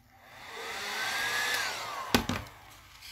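A heat gun blows with a loud whirring hiss and then switches off.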